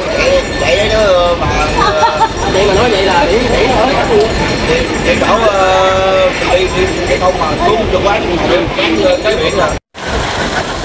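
Men and women talk and laugh together close by.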